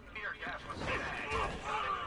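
Heavy punches land with dull thuds.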